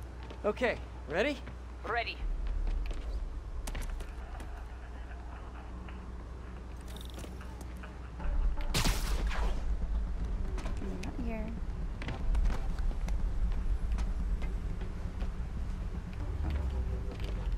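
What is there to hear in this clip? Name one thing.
Quick footsteps patter on a hard rooftop.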